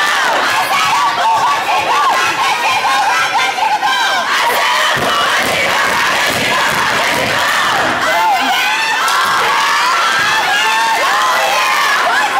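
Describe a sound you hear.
A crowd of young women cheers and shouts loudly in a large echoing hall.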